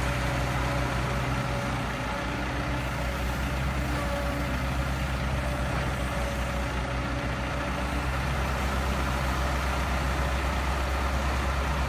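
An excavator's diesel engine rumbles steadily close by.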